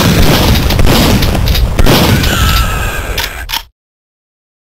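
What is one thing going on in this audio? A gun fires rapid, loud shots.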